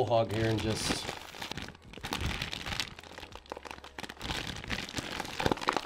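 A paper bag crinkles and rustles close to a microphone.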